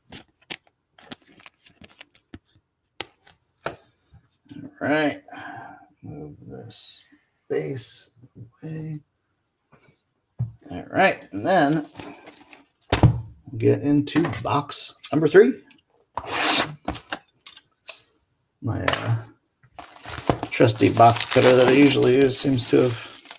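Plastic wrappers crinkle and rustle in hands.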